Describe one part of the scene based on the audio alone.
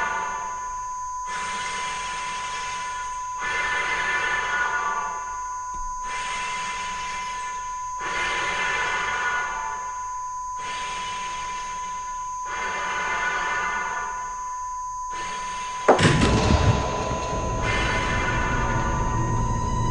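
An electronic device gives off a steady high beep.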